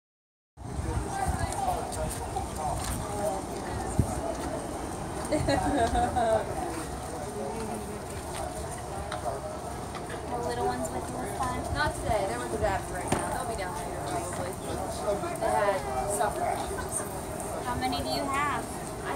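A crowd of adults chatter and talk nearby outdoors.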